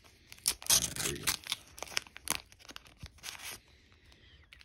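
A plastic wrapper crinkles and tears as hands pull it open.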